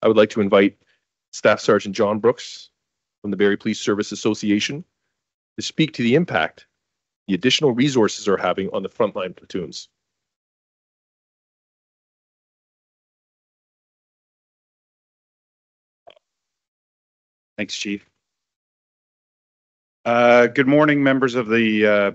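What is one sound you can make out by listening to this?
A man speaks calmly through a microphone over an online call.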